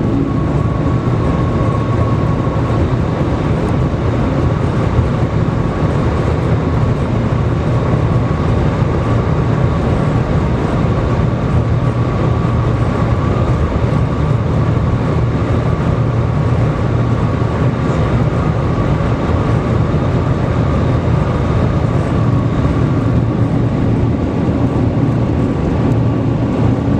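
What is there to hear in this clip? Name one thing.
A steady high whine runs through the train's cabin.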